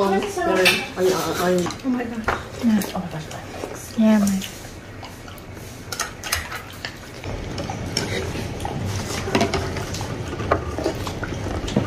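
Chopsticks and spoons clink against bowls.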